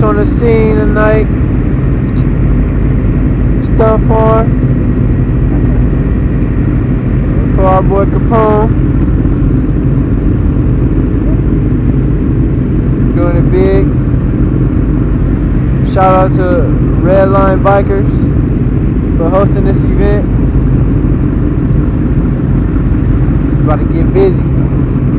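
Motorcycle engines idle with a steady low rumble nearby.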